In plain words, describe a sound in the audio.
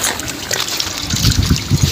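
Shallow water trickles gently.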